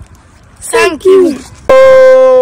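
A boy speaks close to the microphone.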